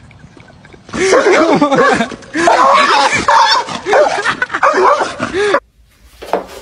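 A dog barks fiercely.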